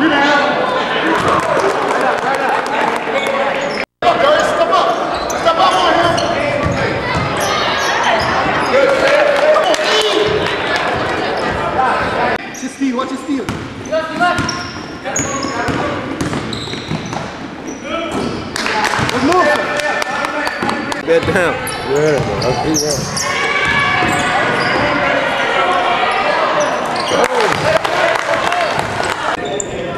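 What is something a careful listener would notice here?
A crowd of spectators cheers and shouts in a large echoing gym.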